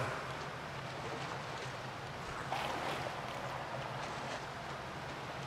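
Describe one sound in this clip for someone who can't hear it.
Water sloshes and splashes with slow wading steps, in a hollow echoing tunnel.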